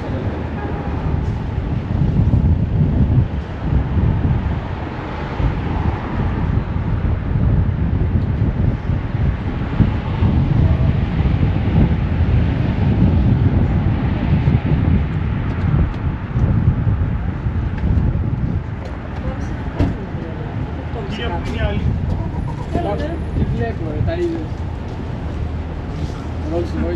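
Wind rumbles outdoors, buffeting steadily throughout.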